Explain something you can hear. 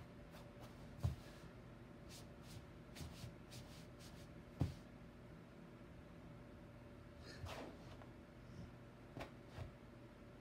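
A hand pats and rubs a cat's fur with soft thumps.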